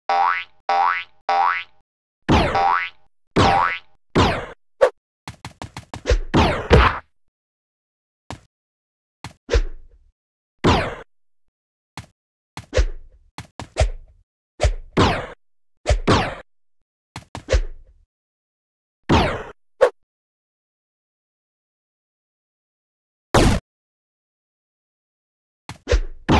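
Short whooshing game sound effects play again and again as a character jumps.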